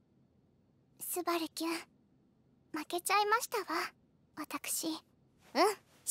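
A young girl speaks softly and sadly.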